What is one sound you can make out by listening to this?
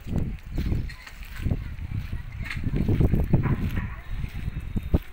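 A small child's bare feet patter softly on dirt.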